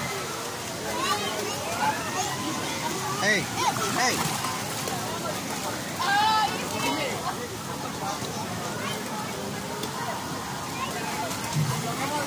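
Children shout and laugh excitedly nearby.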